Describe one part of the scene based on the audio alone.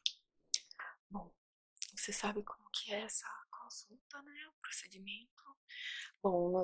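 A young woman whispers softly into a microphone.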